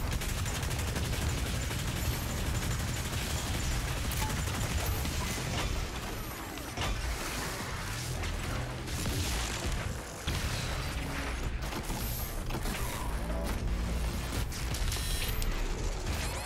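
Guns fire in rapid bursts with heavy booms.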